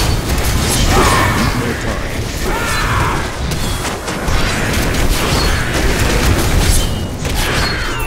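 Fire spells roar and crackle in a game.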